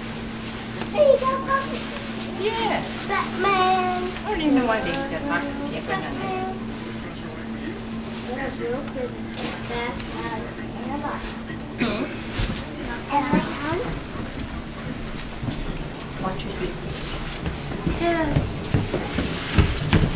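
A small child babbles and squeals.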